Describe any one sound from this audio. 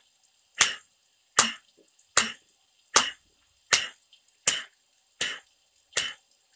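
A man claps his hands in a slow, steady rhythm.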